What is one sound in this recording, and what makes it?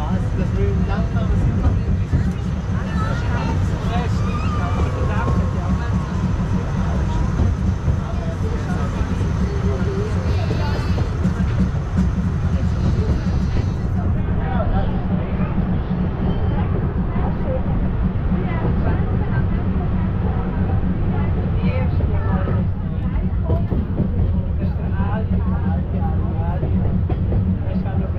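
A train rumbles and clatters steadily along a track.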